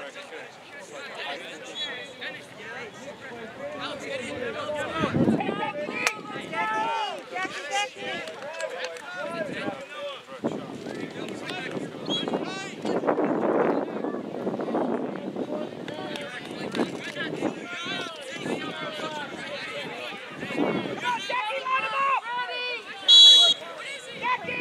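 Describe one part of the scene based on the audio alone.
Young players shout and call out to each other across an open field.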